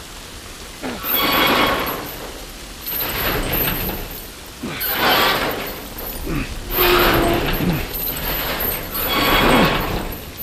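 A metal roller shutter rattles and clanks in loud bursts.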